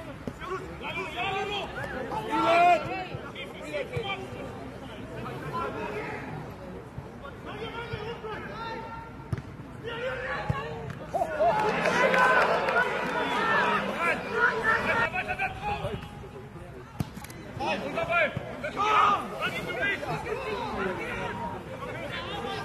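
Young men shout to each other across an open football pitch.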